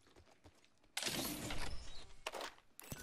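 A metal supply crate slides open with a mechanical whoosh.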